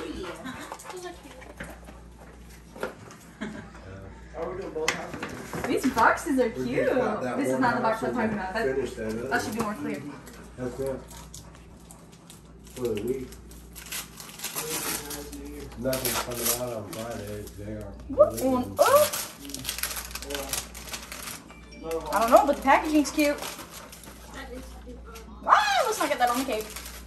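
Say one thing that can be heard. Several women talk and laugh nearby.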